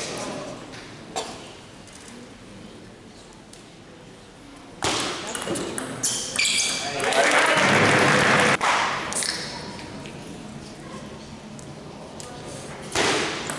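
A table tennis ball clicks back and forth on bats and the table.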